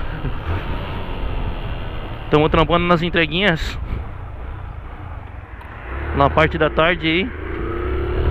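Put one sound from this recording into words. A single-cylinder motorcycle engine hums at low speed.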